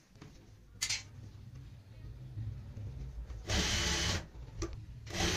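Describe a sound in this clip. A sewing machine hums and stitches in quick bursts.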